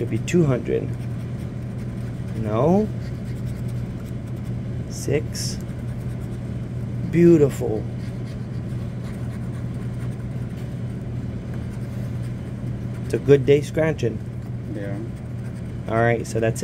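A pen tip scratches and rubs across a card.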